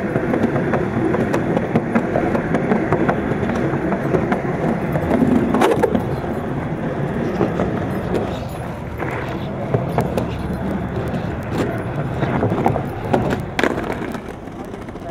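Skateboard wheels roll and rumble over wooden boards.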